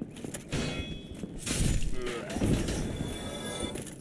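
Metal weapons clash and ring.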